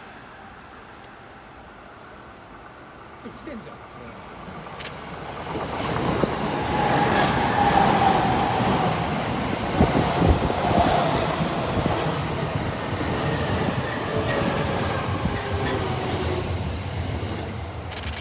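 A second train approaches and rumbles past close by.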